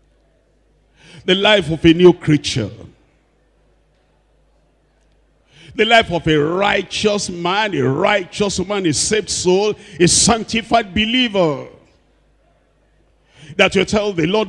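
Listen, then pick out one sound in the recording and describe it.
An elderly man speaks with animation through a microphone, with pauses between phrases.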